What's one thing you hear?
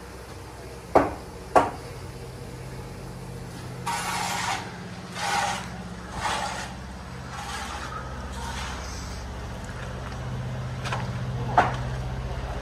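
Footsteps scuff and knock on stone and rubble close by.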